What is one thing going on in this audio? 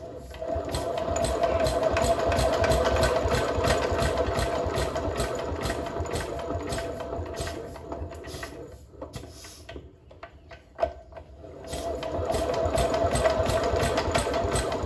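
A single-cylinder stationary diesel engine is hand-cranked with a rapid rhythmic clatter, without firing.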